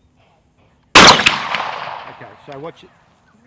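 A shotgun fires a loud blast outdoors that echoes away.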